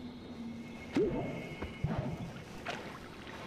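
Short electronic game sound effects chirp and pop.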